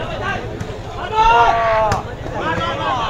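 A crowd cheers loudly and briefly.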